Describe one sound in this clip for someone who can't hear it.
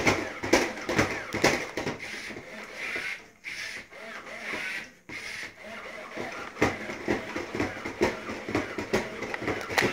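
A toy robot's feet click and tap on a hard floor.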